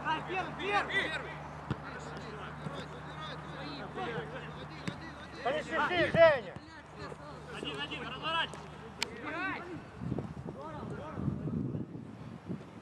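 Young men shout and call out to each other across an open field outdoors.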